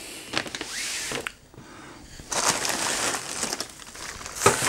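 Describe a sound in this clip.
Wrapping paper rustles and crinkles as it is handled.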